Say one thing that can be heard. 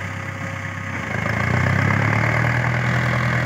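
A tractor engine revs up, its pitch rising.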